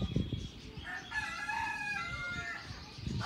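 A bird calls with a series of short hoarse notes.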